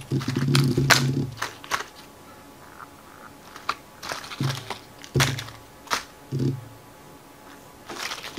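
Plastic toy eggs clatter and knock together under a hand.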